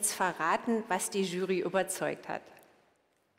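A woman speaks calmly over a loudspeaker in a large hall.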